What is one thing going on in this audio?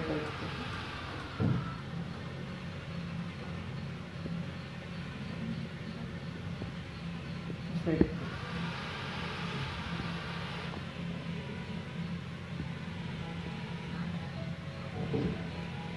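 Small electric motors whir steadily as a robot rover drives.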